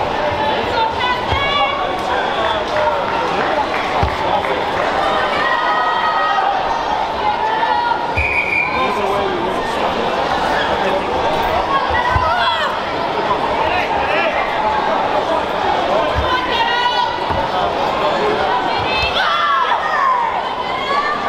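Karate fighters shout sharply as they strike.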